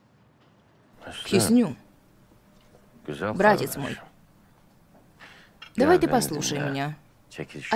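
A middle-aged man speaks in a low, calm voice nearby.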